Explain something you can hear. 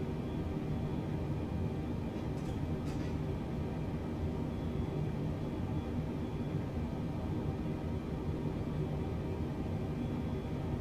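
Jet engines hum steadily in a cockpit.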